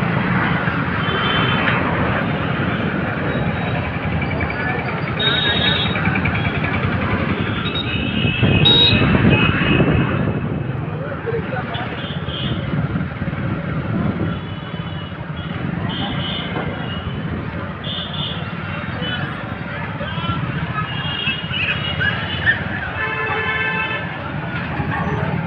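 Vehicle horns honk now and then in busy traffic.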